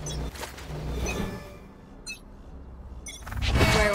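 A magical whoosh bursts out and fades.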